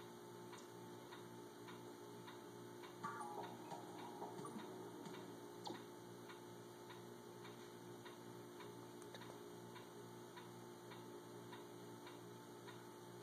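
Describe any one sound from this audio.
Steady electronic music plays with a soft ticking beat.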